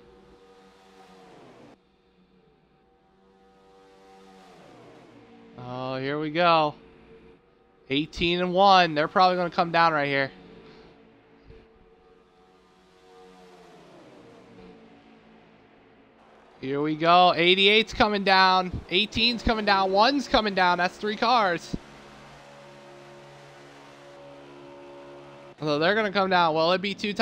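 Race car engines drone loudly as cars speed around a track.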